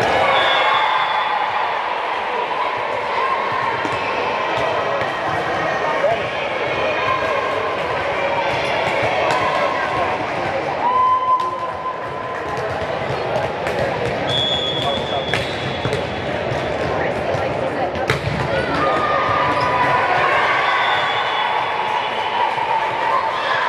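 Squeaking sneakers chirp on the hard court.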